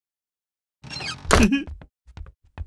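A wooden drawbridge slams down with a thud.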